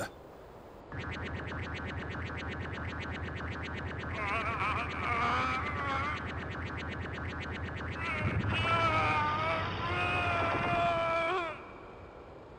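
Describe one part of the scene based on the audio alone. A deep, shimmering magical hum drones and swells.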